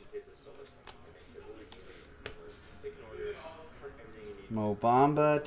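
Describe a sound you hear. Trading cards rustle and click as they are handled.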